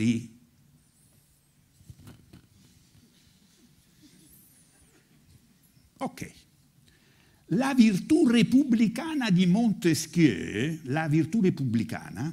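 An elderly man speaks expressively, with long pauses, then declaims loudly.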